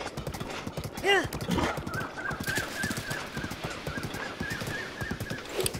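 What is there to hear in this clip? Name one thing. A horse gallops, its hooves thudding rapidly on soft sand.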